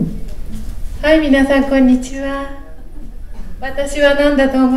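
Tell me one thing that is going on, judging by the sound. A woman speaks in a high, theatrical voice through a microphone.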